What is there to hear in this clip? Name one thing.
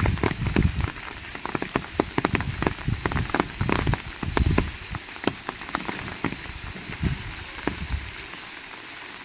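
Footsteps splash along a wet road.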